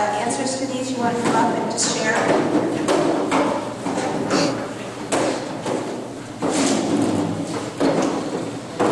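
A woman speaks into a microphone over loudspeakers in an echoing hall.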